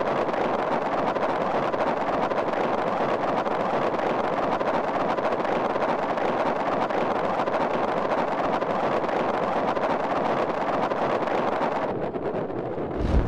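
Wind rushes loudly past a falling skydiver.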